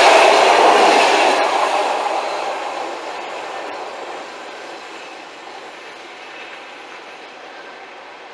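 A passenger train rumbles past close by and fades into the distance.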